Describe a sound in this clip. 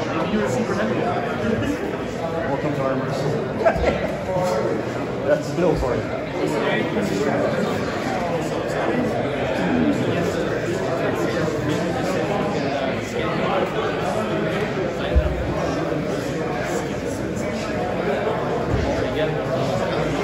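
Several men talk and laugh.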